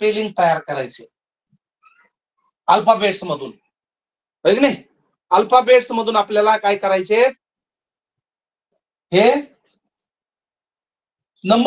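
A man speaks calmly in short phrases with pauses, close by.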